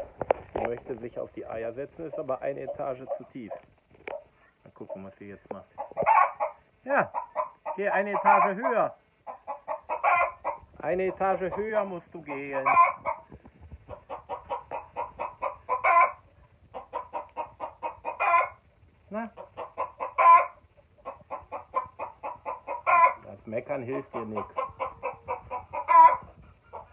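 A chicken clucks close by in quick bursts of rapid, repeated calls.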